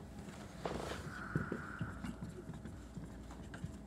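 Pens scratch on paper.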